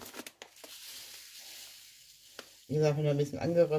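A plastic bag rustles.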